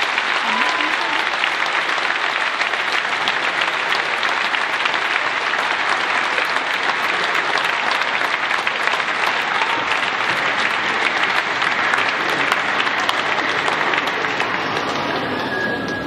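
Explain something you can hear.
An audience applauds in a large tent.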